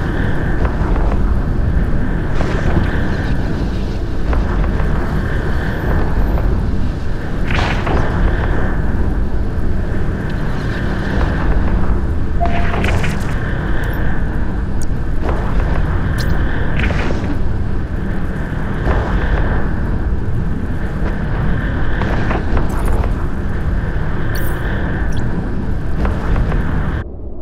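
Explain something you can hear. Laser weapons fire in repeated sharp bursts.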